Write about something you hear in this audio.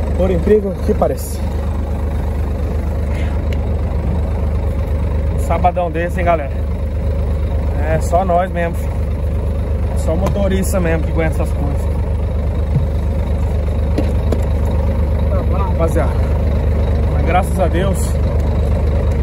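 A man talks casually up close, in bursts with pauses.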